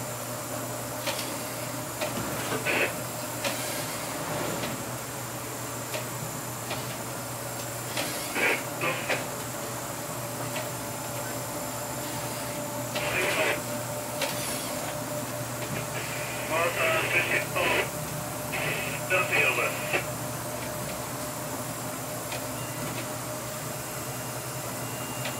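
A ship's engine hums steadily and low.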